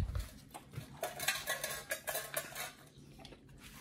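A dog eats noisily from a metal bowl.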